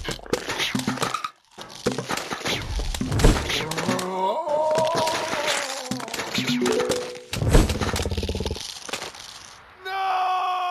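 Game plants pop and thump rapidly as they fire.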